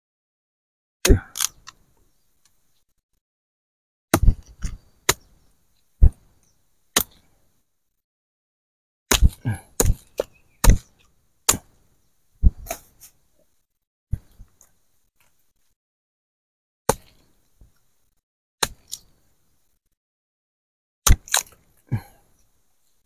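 A knife chops into cassava roots with sharp, uneven thuds.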